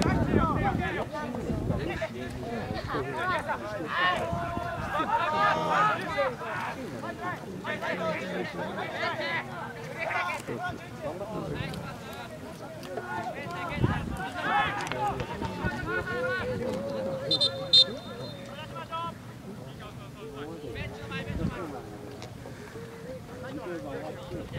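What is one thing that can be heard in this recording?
Players shout to each other across an open field outdoors.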